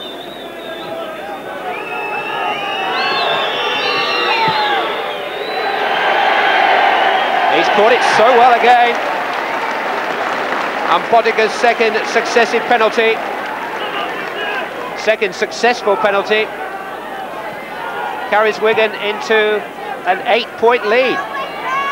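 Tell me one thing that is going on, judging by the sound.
A large crowd cheers and roars outdoors, swelling and then easing off.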